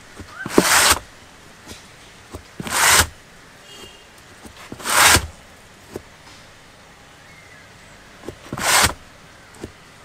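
Hands scrape and rub against the inside of a rubber tyre in short bursts.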